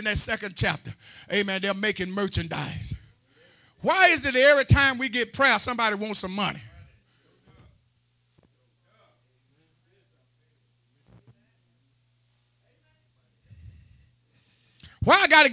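A middle-aged man preaches passionately into a microphone, his voice ringing through a loudspeaker in an echoing hall.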